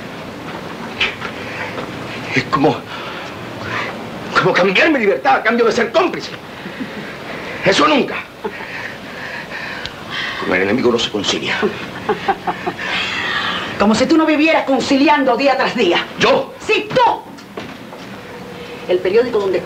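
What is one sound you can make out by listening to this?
A woman speaks sharply, close by.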